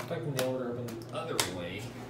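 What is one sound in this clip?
An elevator button clicks as a finger presses it.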